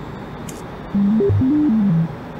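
A low electronic buzzer tone sounds briefly.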